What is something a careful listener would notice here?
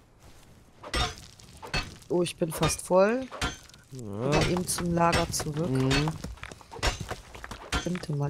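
A pickaxe strikes stone with sharp knocks.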